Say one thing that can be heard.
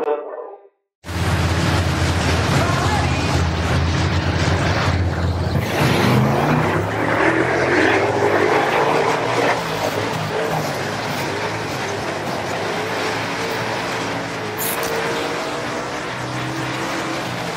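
A race car engine roars loudly up close and revs higher as it speeds up.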